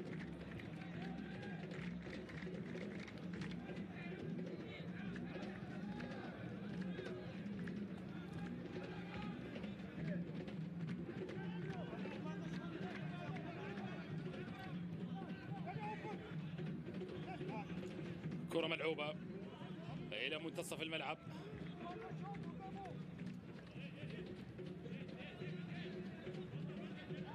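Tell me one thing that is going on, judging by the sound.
A small crowd murmurs faintly in an open stadium.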